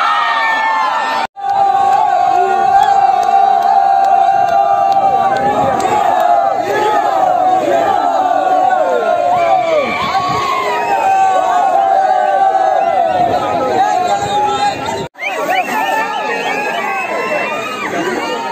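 A large crowd of young men cheers and shouts outdoors.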